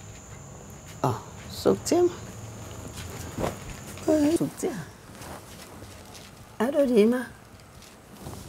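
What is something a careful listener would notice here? An elderly woman answers calmly nearby.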